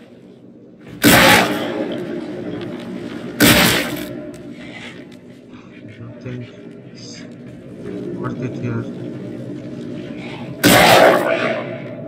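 A pistol fires loud shots.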